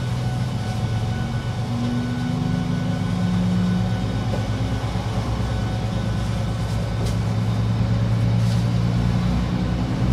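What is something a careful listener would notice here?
Train wheels rumble on the rails.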